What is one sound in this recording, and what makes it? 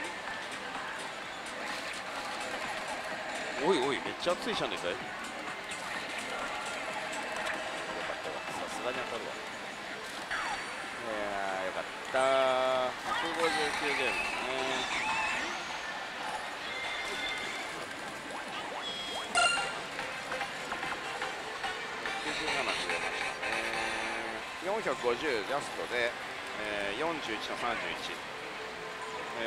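A slot machine plays electronic jingles and beeps.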